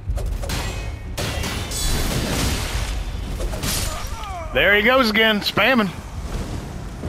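Blades slash and clang in a fast fight.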